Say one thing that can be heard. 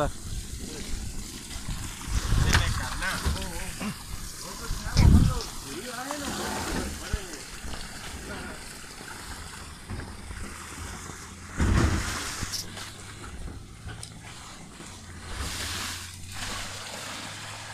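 Shallow water ripples and splashes over the ground.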